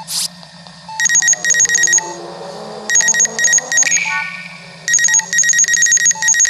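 A scanning machine beeps in rapid electronic bursts.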